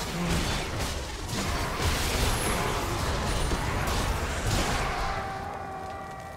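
Magic blasts and clashing weapons crackle and burst in a video game battle.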